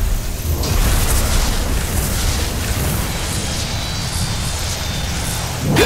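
Lightning crackles and roars with a deep rumble.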